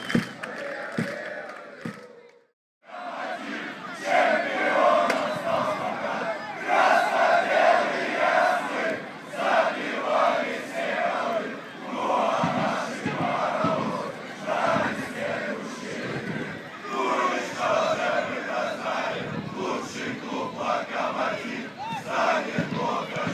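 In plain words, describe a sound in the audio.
A large crowd of fans chants loudly in unison outdoors.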